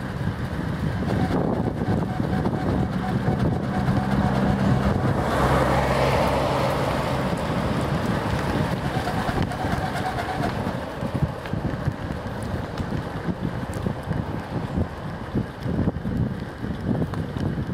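Wind rushes past.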